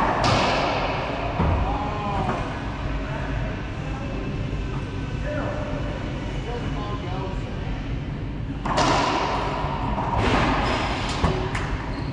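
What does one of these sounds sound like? A ball smacks hard against the walls of an echoing court.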